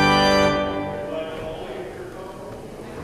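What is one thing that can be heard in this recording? An organ plays a loud chord that echoes and fades through a large hall.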